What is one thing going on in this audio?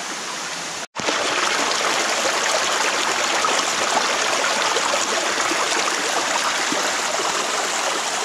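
A small waterfall rushes and splashes over rocks close by.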